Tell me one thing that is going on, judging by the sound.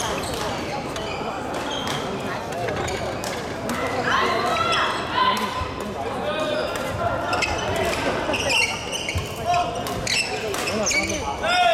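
Shuttlecocks are struck sharply with rackets in a large echoing hall.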